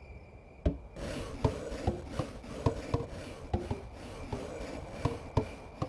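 A horse's hooves clop at a steady walk.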